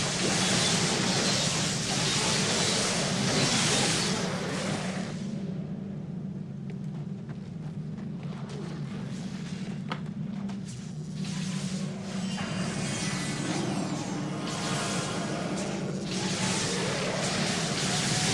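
Magic spells crackle and whoosh in a fast fight.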